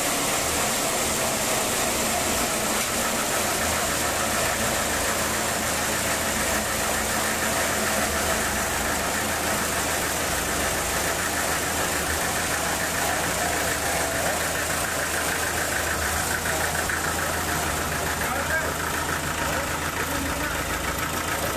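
A band saw cuts through a large log with a steady, loud whine.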